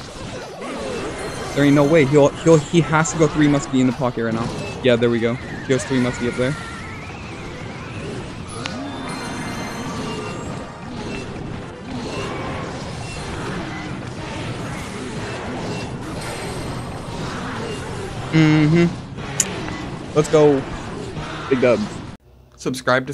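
Battle sound effects of a video game clash and burst throughout.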